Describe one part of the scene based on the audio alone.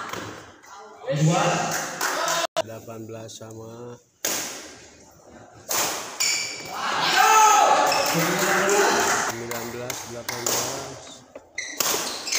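Men talk and call out in an echoing hall.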